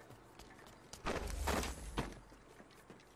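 A game item is picked up with a short clatter.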